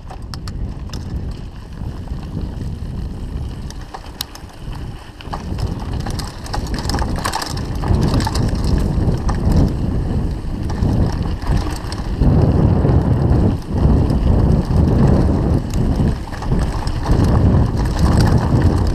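Wind rushes and buffets loudly, growing stronger as the pace picks up.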